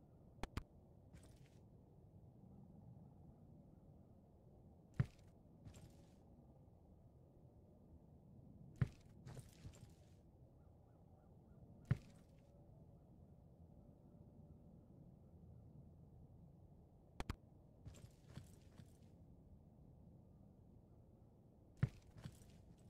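Short knocks sound as furniture is set down.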